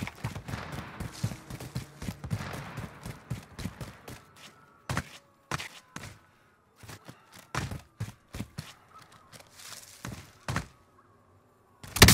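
Footsteps scrape and crunch over rock.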